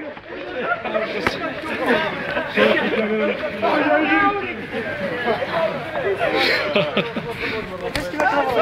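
Several young men shout and laugh excitedly nearby, outdoors.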